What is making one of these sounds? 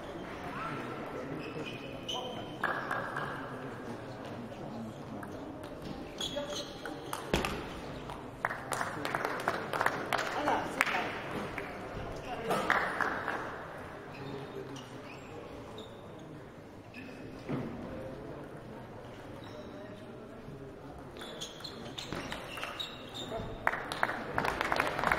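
A table tennis ball clicks back and forth between paddles and the table in a large echoing hall.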